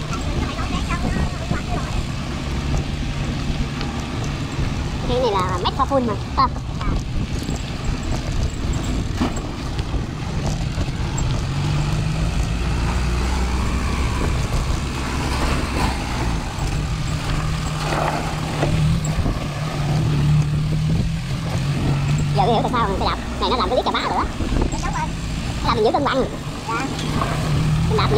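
Bicycle tyres crunch over a rough dirt road.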